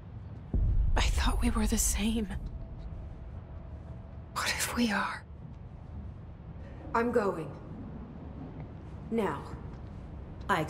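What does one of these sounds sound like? A young woman speaks quietly and firmly.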